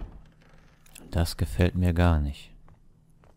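A heavy wooden door creaks slowly open.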